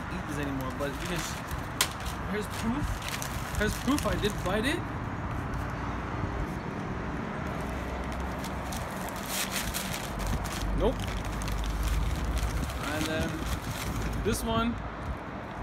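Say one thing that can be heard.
A paper bag crinkles and rustles.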